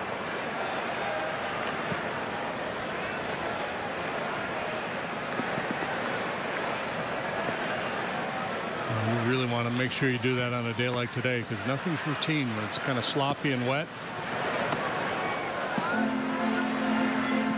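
A large crowd murmurs steadily in an outdoor stadium.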